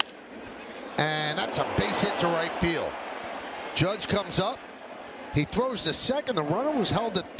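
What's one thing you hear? A large crowd cheers loudly.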